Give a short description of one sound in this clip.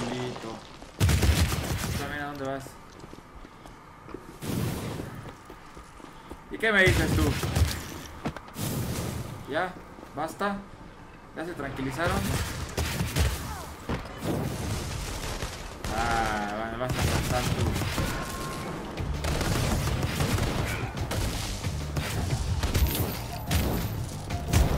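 Video game blasts and fiery bursts crackle.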